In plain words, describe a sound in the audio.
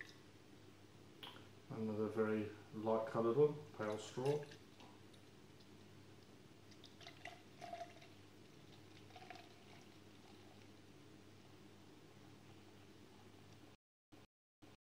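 Beer pours from a bottle into a glass and fizzes.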